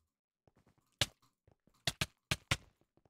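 A sword hits a player with sharp clicks.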